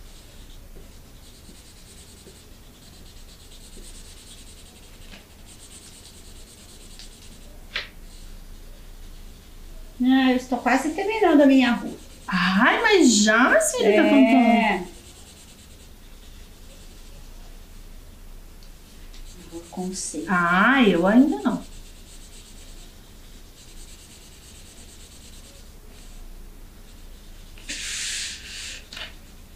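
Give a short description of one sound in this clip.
Pencils scratch on paper.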